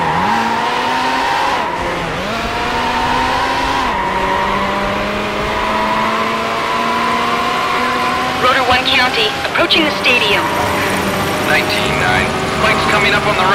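A racing car engine roars and shifts through gears, rising in pitch.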